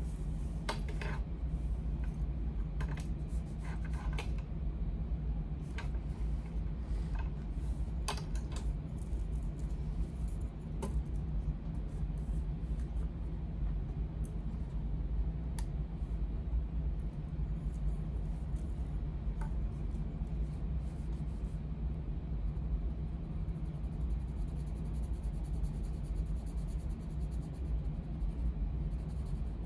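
A coloured pencil scratches softly across paper.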